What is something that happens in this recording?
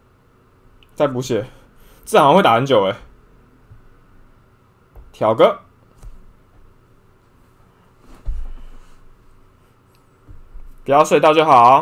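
A young man talks with animation into a nearby microphone, in short bursts.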